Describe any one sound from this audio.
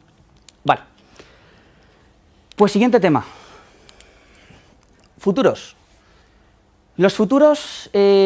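A man speaks with animation to an audience in a room with a slight echo, in short bursts with pauses.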